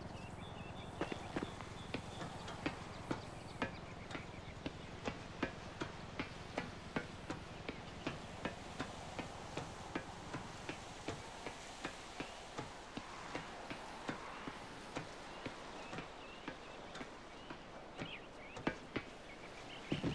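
Footsteps clank steadily on the metal rungs of a ladder.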